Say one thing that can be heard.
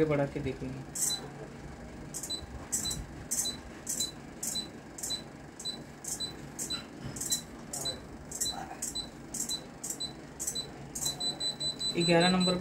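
Short electronic beeps sound repeatedly at a steady pace.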